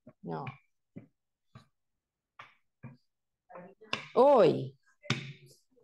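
A rolling pin rolls over dough on a counter.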